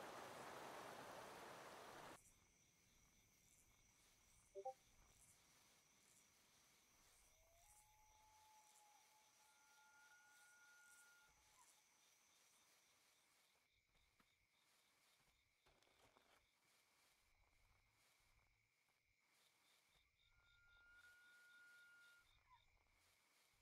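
An animal's paws pad softly over grass and dirt.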